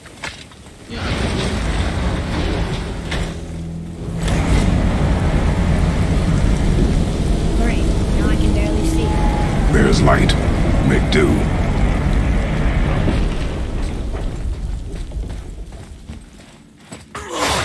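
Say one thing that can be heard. Heavy rain pours down.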